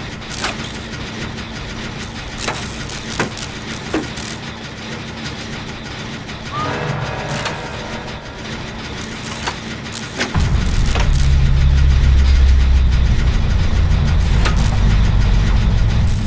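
A machine clanks and rattles as it is being repaired.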